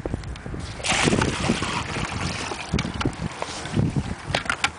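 Water pours from a bucket and splashes into a plastic tub.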